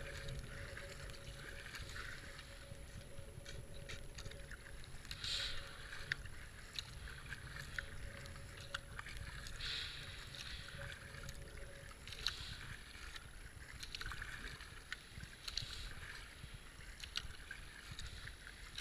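Water ripples and gurgles against a kayak's hull.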